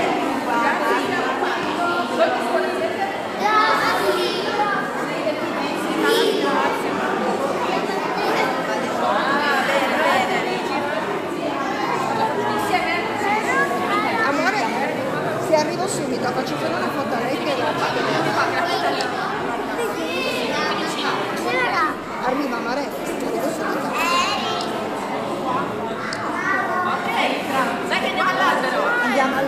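Young children chatter and call out close by.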